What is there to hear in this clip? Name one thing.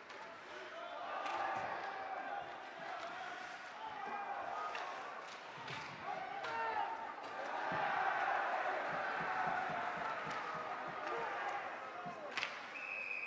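A crowd of spectators cheers and shouts in a large echoing rink.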